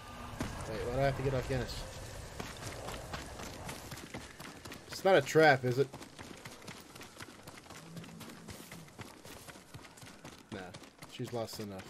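Footsteps run quickly over stone steps and leaves.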